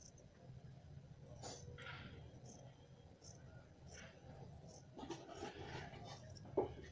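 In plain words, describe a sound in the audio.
Scissors snip and crunch through fabric.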